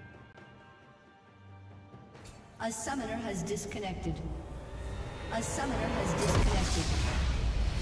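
Fantasy battle sound effects clash and burst.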